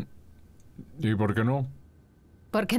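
A man answers briefly nearby.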